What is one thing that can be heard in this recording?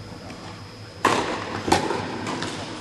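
Tennis rackets strike a ball with sharp pops that echo through a large hall.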